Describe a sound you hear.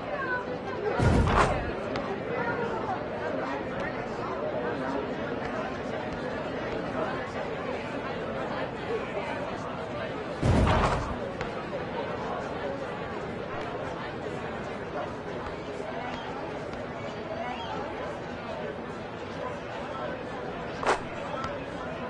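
A basketball hits the hoop with a loud thump.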